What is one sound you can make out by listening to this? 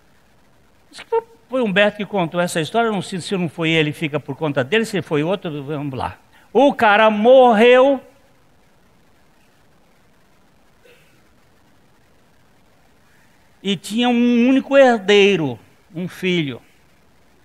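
A middle-aged man speaks with animation in a room with some echo.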